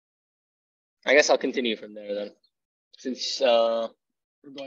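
A young man speaks casually over an online call.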